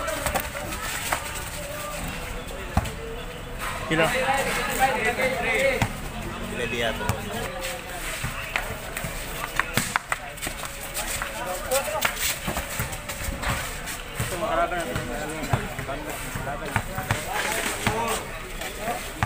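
A ball thumps as players kick and head it back and forth.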